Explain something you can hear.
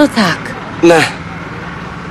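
A boy speaks close by.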